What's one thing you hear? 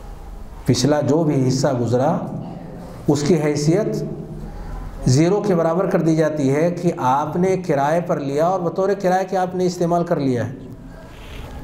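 An elderly man speaks steadily into a microphone, with a chanting lilt.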